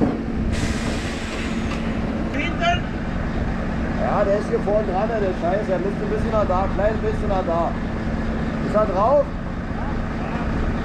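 A heavy engine idles with a steady low hum.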